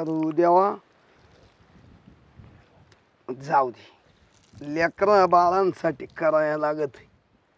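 Water trickles from a tap and splashes onto the ground.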